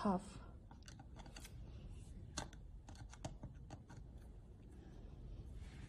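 A screwdriver clicks and scrapes against small screws.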